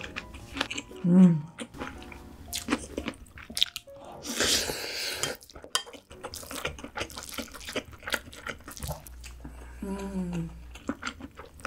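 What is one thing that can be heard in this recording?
A young woman hums briefly with her mouth closed.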